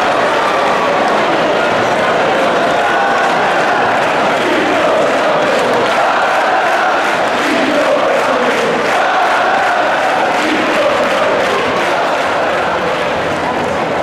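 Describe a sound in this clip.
A large crowd chants and cheers loudly in a big echoing arena.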